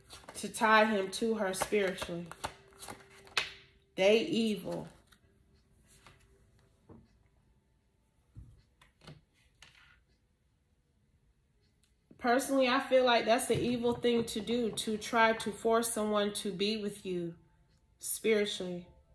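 Playing cards are shuffled by hand.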